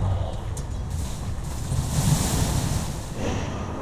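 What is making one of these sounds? A magic spell bursts with a sharp whoosh.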